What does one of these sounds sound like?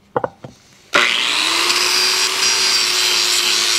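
An angle grinder whines loudly while grinding metal.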